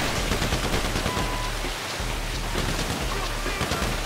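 A water cannon sprays with a loud hiss.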